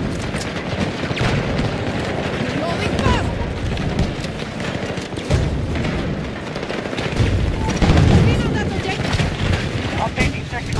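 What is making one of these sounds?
Gunfire and explosions crackle from a game.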